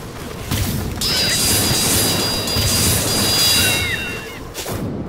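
Guns fire rapidly in loud bursts.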